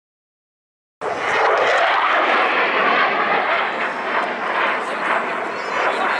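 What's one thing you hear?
A jet roars overhead and fades into the distance.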